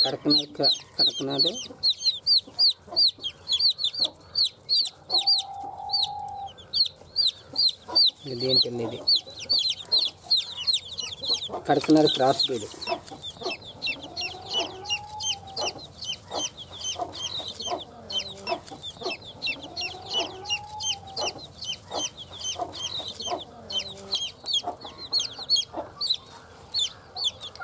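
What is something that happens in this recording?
Chicks peep rapidly and constantly, close by.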